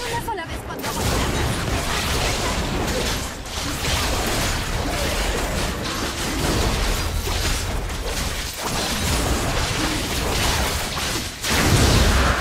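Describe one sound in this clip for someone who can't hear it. Fantasy battle effects whoosh, crackle and clash.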